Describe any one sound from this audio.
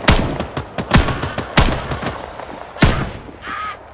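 Gunshots crack sharply in quick bursts, close by.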